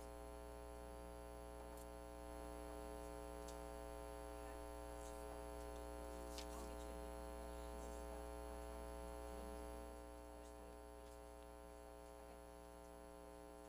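An organ holds a soft, steady chord in a large echoing hall.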